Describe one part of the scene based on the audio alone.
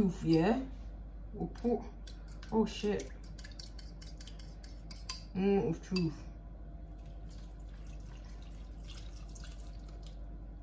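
A utensil scrapes and taps against a pot.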